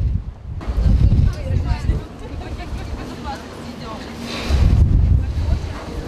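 Footsteps of several people walk along a metal deck.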